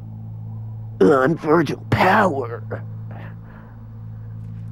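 A young man speaks in a calm, cool voice.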